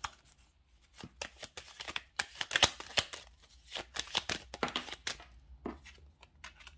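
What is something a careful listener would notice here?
Playing cards riffle and flick against each other.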